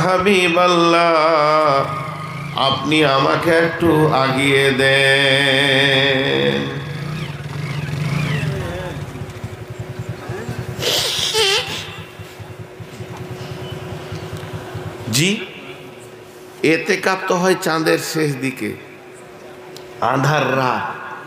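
A middle-aged man chants and preaches loudly through a microphone and loudspeakers.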